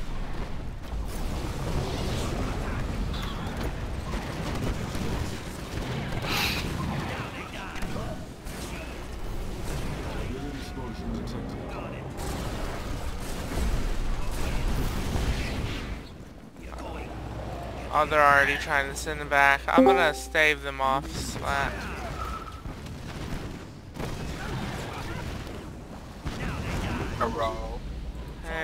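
Gunfire and explosions rattle in a battle.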